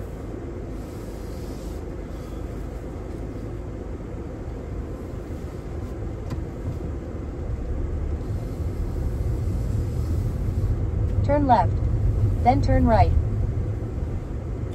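A car engine hums low and grows louder as the car gathers speed.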